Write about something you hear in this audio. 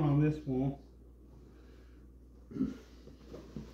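A pillow rustles as a man picks it up.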